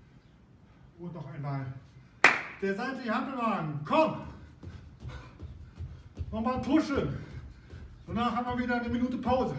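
A middle-aged man speaks with animation, giving instructions.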